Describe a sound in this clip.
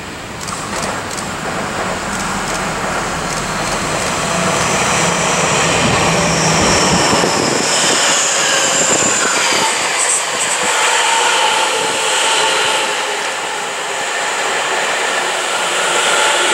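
A passenger train rumbles past close by, its wheels clattering over the rails.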